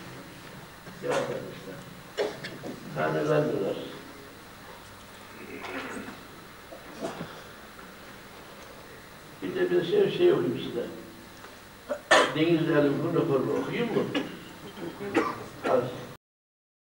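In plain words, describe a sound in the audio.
An elderly man reads aloud into a nearby microphone, in short bursts with pauses.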